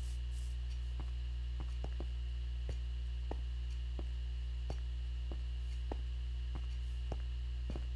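Footsteps tap softly and steadily.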